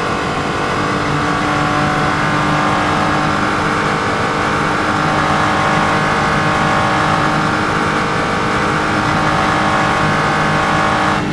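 A racing car engine roars at high revs, holding a steady high pitch in top gear.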